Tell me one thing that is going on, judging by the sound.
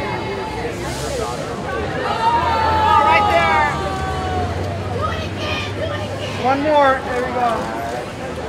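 A crowd of men and women chatter and call out nearby outdoors.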